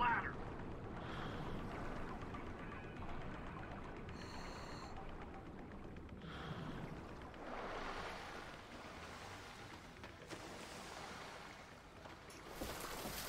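Water swirls and bubbles as a diver swims underwater.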